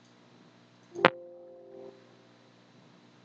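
A short computer alert chime sounds once.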